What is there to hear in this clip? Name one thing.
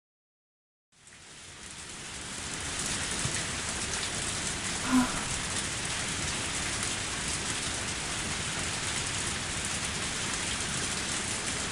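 Steady rain pours down outdoors.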